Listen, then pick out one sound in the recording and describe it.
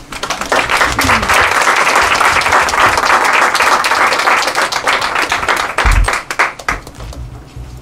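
An audience applauds loudly indoors.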